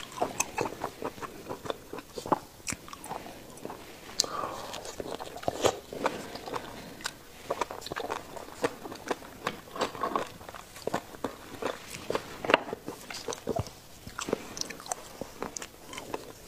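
A woman chews food with wet, smacking sounds close to a microphone.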